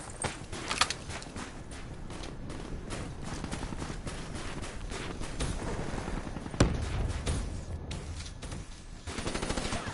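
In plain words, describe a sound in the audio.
Quick footsteps crunch through snow.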